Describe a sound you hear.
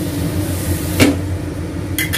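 A glass lid clanks down onto a metal pan.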